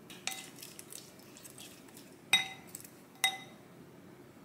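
A wooden spoon clinks against a glass bowl.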